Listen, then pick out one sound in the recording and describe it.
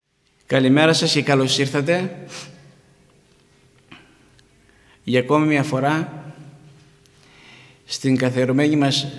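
A man speaks calmly into microphones, close by, with pauses.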